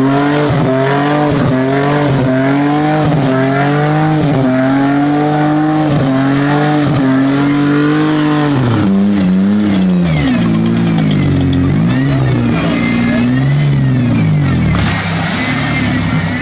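An engine revs hard and roars, rising and falling.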